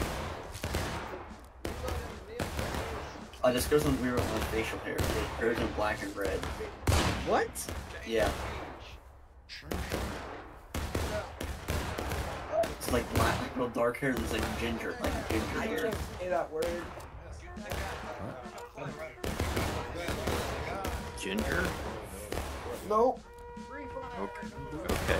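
Rifle shots crack repeatedly nearby and in the distance.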